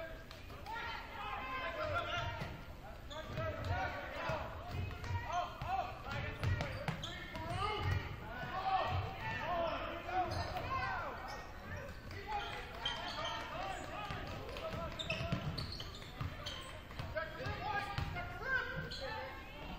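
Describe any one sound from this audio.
Spectators and players call out in a large echoing gym.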